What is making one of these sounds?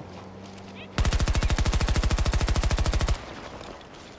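A rifle fires a rapid automatic burst.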